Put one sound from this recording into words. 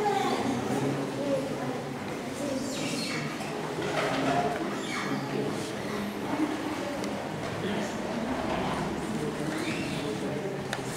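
Several men and women talk quietly nearby.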